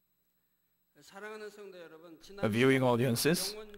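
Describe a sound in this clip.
A large crowd sings together in a big echoing hall.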